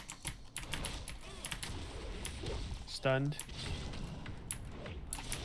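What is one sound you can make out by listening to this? Magic spells crackle and zap in quick, sharp bursts.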